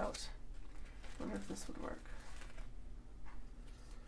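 A plastic bag crinkles as a hand rummages in it.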